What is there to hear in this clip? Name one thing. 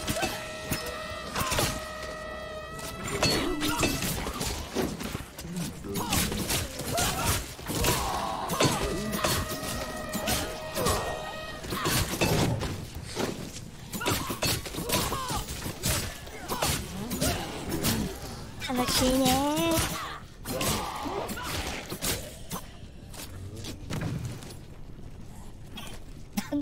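Blades slash and clash in rapid bursts of fighting.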